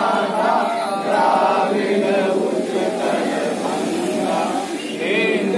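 A crowd of men sings together outdoors.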